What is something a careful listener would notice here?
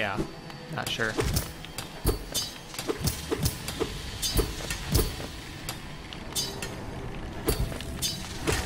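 Small quick footsteps tap on a hard floor.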